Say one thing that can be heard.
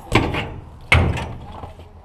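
A bike thumps hard onto a concrete ledge.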